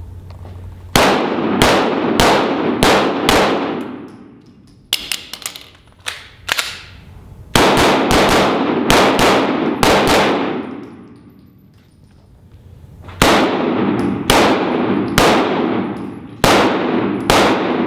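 A pistol fires in rapid bursts of shots that boom and echo in a large hall.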